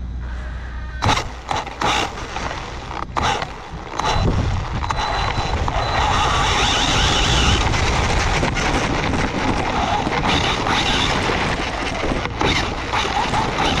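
A small electric motor whirs as a toy car speeds along.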